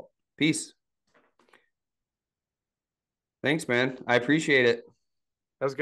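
A man speaks calmly and close into a microphone, in short bursts.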